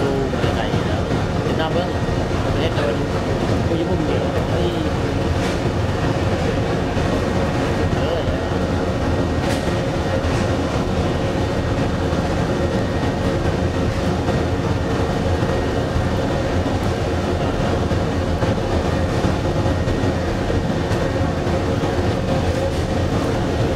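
Burning wood crackles and pops in a furnace.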